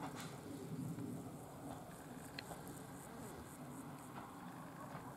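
A diesel railcar rumbles low in the distance.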